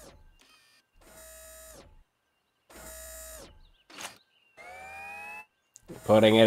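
A robot's machinery whirs in short, pitched bursts.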